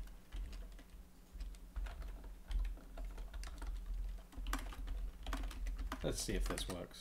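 Keys clatter as a man types quickly on a keyboard.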